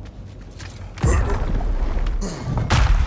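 Heavy doors rumble and grind open.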